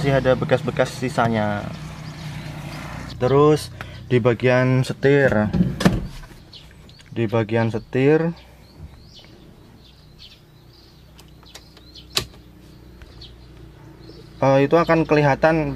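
A man speaks calmly and close by, explaining.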